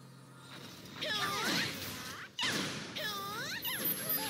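Magic spells whoosh and shimmer with sweeping, rising and falling tones.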